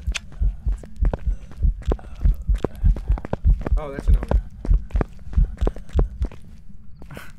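Footsteps thud steadily in the dark.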